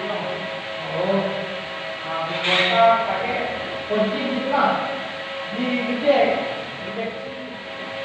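Men talk nearby in a casual way.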